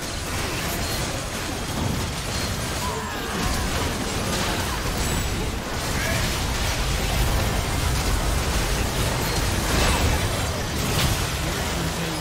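Magic spells crackle, blast and whoosh in a hectic battle.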